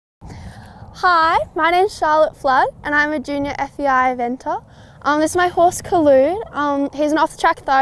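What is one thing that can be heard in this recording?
A young woman speaks cheerfully and close by, laughing at times.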